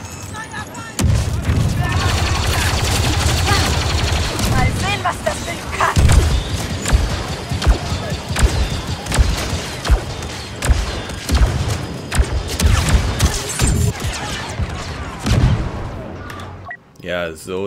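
Rapid laser blasts fire back and forth.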